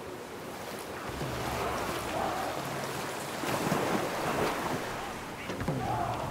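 A waterfall rushes and splashes loudly.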